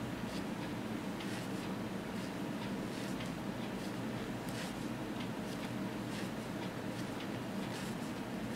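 Wooden knitting needles tap and click softly against each other.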